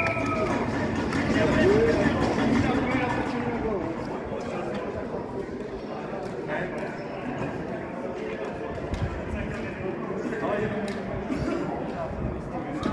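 Men call out to one another on the rink.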